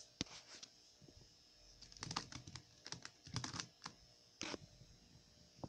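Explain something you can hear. Plastic puzzle cubes click and clack as a hand handles them on a table.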